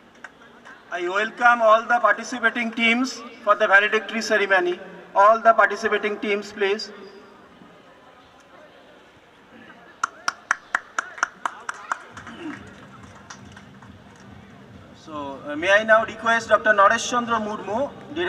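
A man announces through a loudspeaker in an open outdoor space.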